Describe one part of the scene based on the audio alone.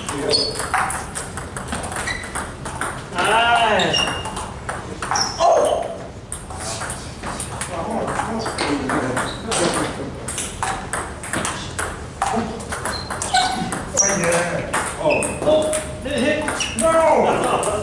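Men call out and talk across the room.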